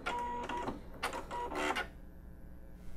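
A sewing machine stitches with a rapid mechanical whir.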